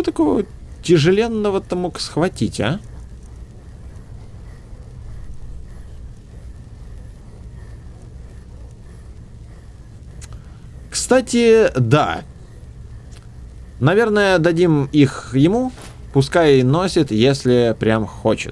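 A young man talks calmly and close to a microphone, with pauses.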